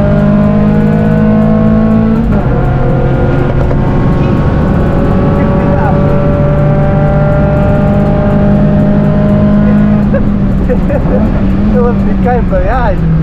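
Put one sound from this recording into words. A car engine roars loudly from inside the cabin, holding a high, steady drone that drops briefly at a gear change.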